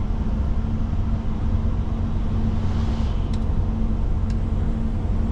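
An oncoming truck rushes past.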